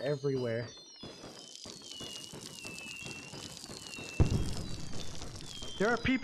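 Fire crackles and sparks pop.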